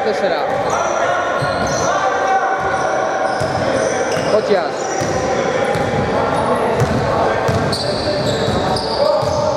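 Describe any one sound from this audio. Sneakers squeak sharply on a hard gym floor.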